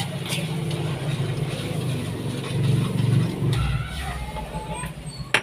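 A spatula scrapes and stirs in a metal pan.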